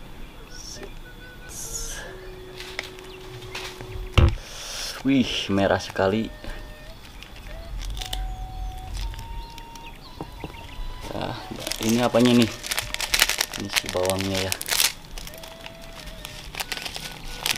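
Thick sauce squelches out of a packet onto noodles.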